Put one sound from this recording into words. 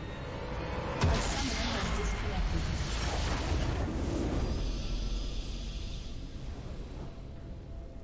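A triumphant game fanfare bursts out and then fades.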